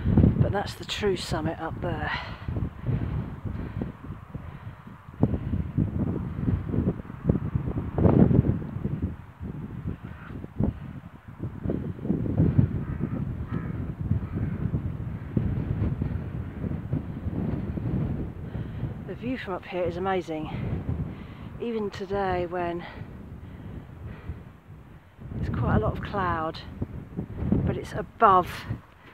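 Wind gusts and buffets loudly across open ground.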